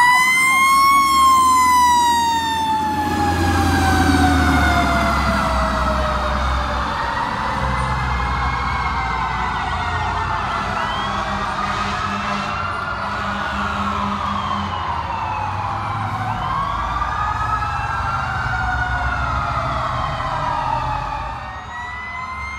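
A fire truck engine rumbles close by as it passes.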